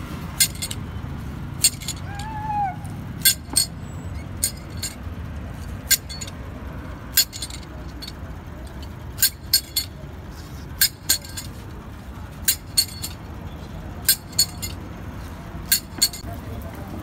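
A knife chops through sugarcane with sharp knocks.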